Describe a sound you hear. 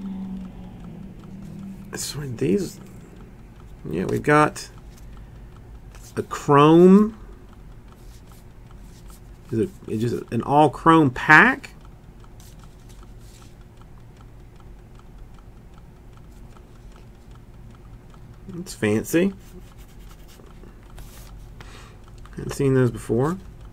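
Stiff paper cards slide and rustle against each other.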